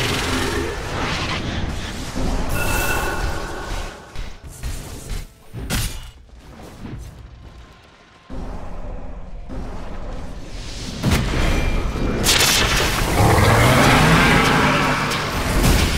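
Magic spells and weapon blows clash in a game fight.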